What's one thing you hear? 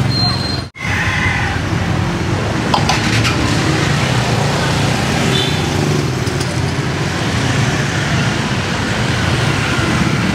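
A ladle scrapes and clinks against a metal pot.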